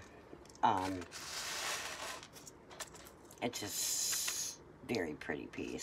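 Plastic wrapping rustles and crinkles as it is handled.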